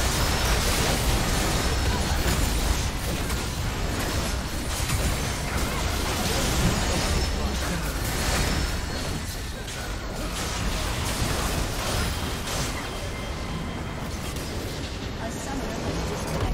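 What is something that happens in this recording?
Game spells and weapon hits crash and crackle in a busy fight.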